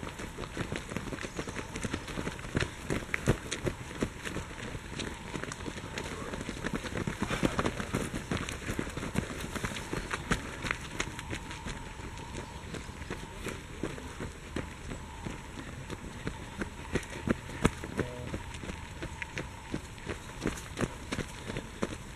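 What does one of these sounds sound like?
Runners' footsteps crunch on a leafy dirt path.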